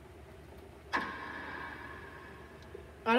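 A bat cracks against a baseball, heard through a small speaker.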